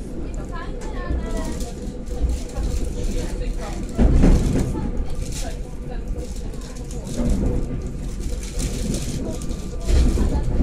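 A train rumbles and clatters along the tracks, heard from inside a carriage.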